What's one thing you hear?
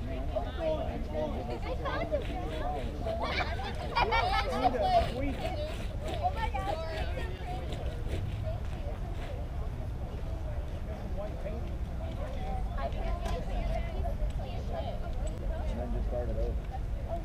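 Children and adults chatter and call out at a distance.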